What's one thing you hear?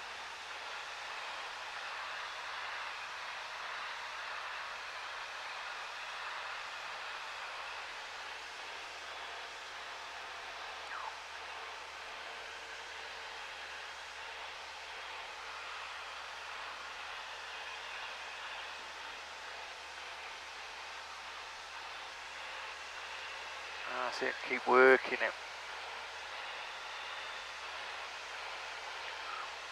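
A light aircraft engine drones steadily.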